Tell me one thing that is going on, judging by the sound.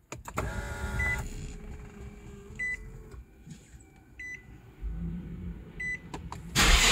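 A car chime beeps several times.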